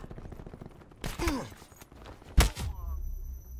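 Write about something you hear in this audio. Loud gunshots blast in a game.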